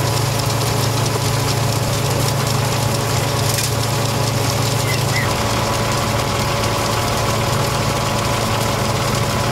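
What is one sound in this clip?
A machine engine hums steadily nearby.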